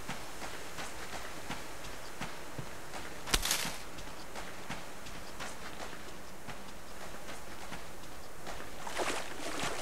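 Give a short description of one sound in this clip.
Footsteps crunch steadily on dry dirt and grass.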